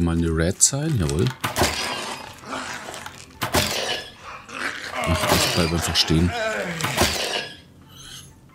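A large monster rat squeals and snarls.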